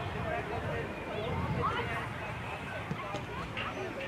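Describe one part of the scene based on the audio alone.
A ball thuds as a child kicks it.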